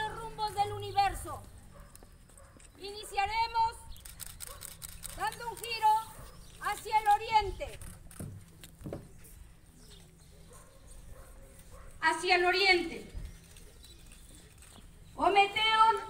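A woman speaks loudly in slow phrases with pauses, outdoors.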